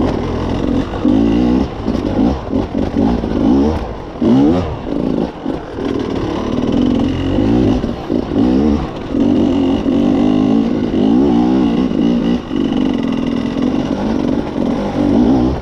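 Tyres crunch over loose rocks and gravel.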